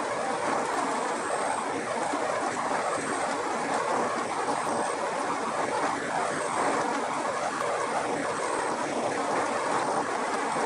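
A machine hums and rattles steadily as walnuts tumble through it.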